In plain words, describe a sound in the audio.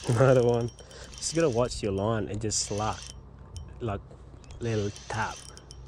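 A fishing reel's handle clicks and whirs as it is turned.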